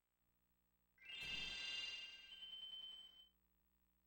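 A bright, sparkling video game chime rings out and fades.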